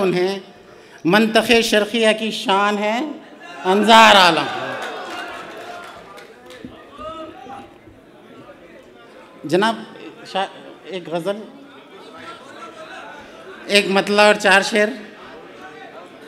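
A man speaks into a microphone over a loudspeaker in a large echoing hall, pausing between phrases.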